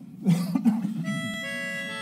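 A group of men begins singing together in harmony.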